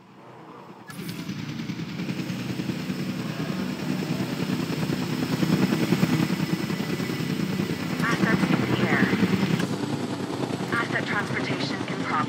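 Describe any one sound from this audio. A helicopter's rotor thuds steadily close by.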